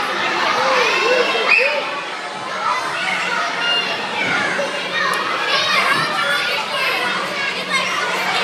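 Several young children chatter and call out excitedly nearby.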